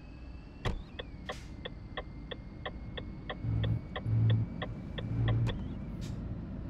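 A truck's turn signal ticks rapidly.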